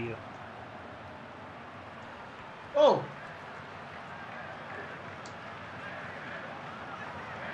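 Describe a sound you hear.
A stadium crowd roars and chants steadily in the distance.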